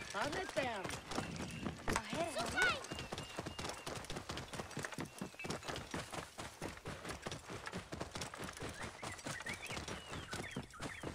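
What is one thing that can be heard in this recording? Horse hooves thud on a dirt track.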